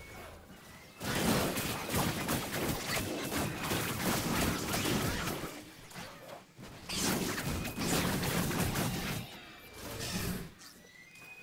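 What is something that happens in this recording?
Spell effects whoosh and crackle in a game battle.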